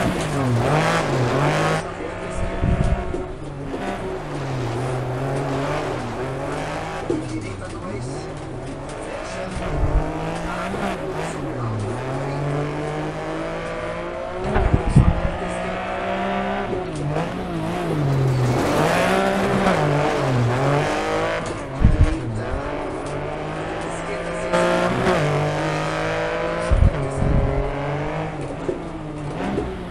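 Gravel sprays and crunches under tyres.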